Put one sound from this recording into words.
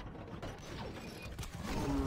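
Arrows whoosh through the air.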